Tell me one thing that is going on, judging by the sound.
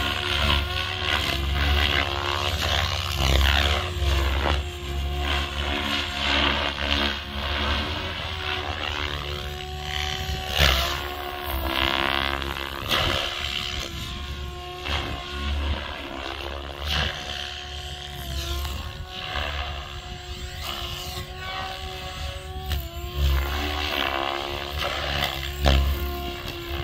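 A model airplane engine whines overhead, rising and falling in pitch as it passes by.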